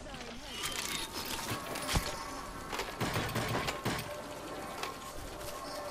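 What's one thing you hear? Short digital menu clicks and blips sound as items are selected.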